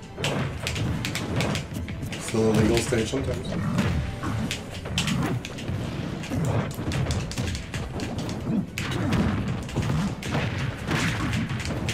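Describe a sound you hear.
Punches and blows land with sharp thuds and cracks.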